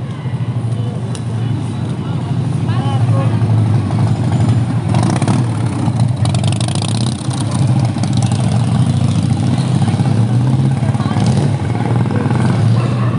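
Motorcycle engines rumble past close by.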